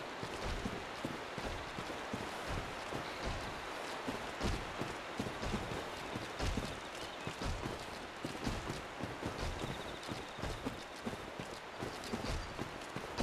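Armour clanks and rattles with each step.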